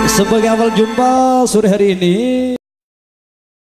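A man sings into a microphone, amplified through loudspeakers.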